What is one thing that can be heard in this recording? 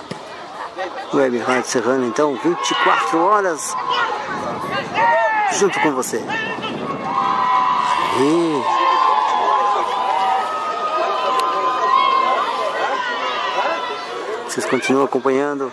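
Men shout to one another across an open field.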